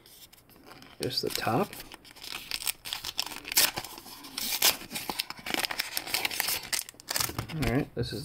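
A foil wrapper crinkles and tears as hands rip it open.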